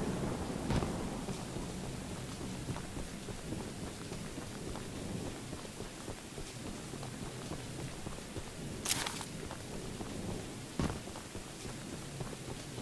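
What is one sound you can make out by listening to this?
Footsteps crunch through dry grass and dirt.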